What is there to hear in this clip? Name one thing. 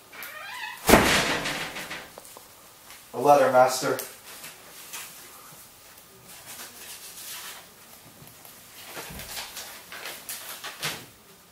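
Paper rustles and crinkles.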